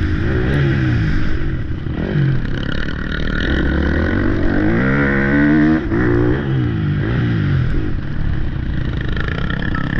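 A motorcycle engine revs up and down loudly close by.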